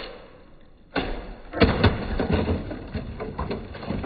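Bricks thud onto the ground.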